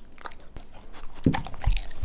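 A dog licks a treat from a hand.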